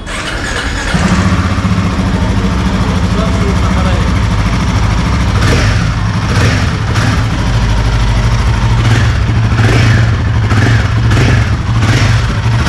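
A motorcycle engine starts and idles with a deep, steady rumble.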